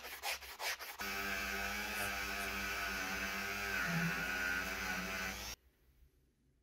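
A rotary tool whirs as a wire brush scrubs metal.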